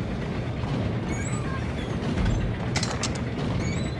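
A metal cabinet door creaks open.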